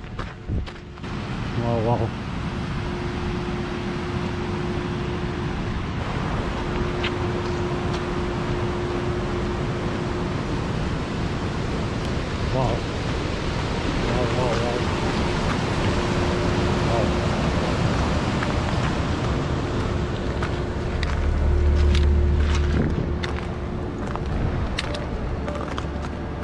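Wind blows steadily across an open mountainside.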